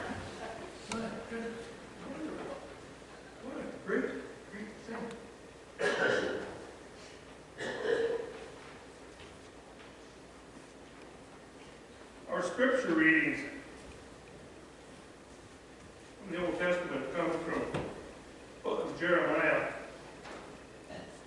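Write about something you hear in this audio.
An elderly man speaks calmly into a microphone in a room with some echo, pausing often.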